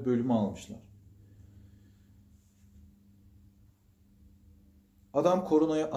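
A middle-aged man speaks calmly and close by, with pauses.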